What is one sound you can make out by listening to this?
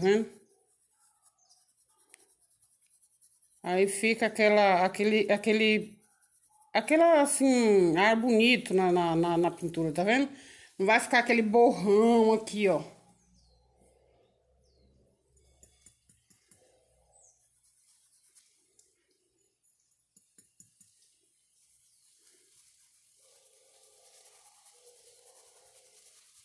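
A paintbrush dabs and strokes softly on cloth.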